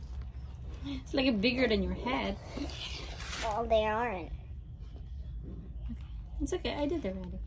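A young girl speaks in a playful, animated voice close by.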